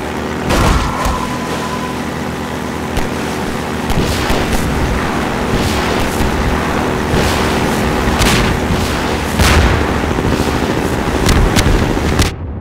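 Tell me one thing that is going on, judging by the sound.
A boat hull thumps and splashes against water.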